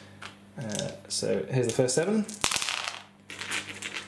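Dice clatter as they roll across a tabletop.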